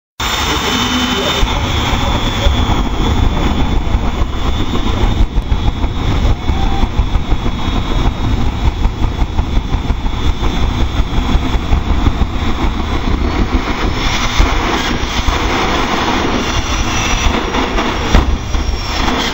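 Jet dragster engines roar loudly with a deep rumble.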